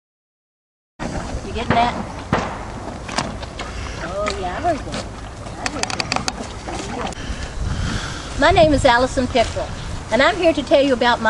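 Horses crop and chew grass.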